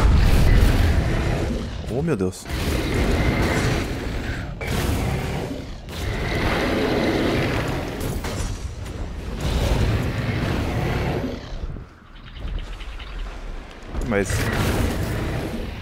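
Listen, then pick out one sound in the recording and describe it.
A dragon breathes out a roaring blast of fire.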